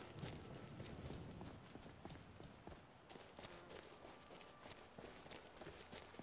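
Footsteps rustle through dry grass at a steady walking pace.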